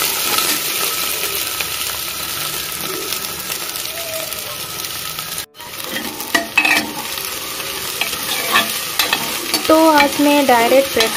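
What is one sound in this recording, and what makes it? Onions sizzle and crackle in hot oil.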